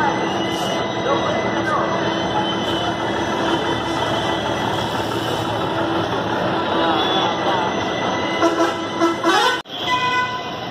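A bus engine idles and rumbles nearby.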